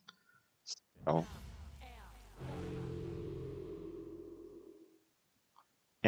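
A magical spell crackles and hums as it is cast.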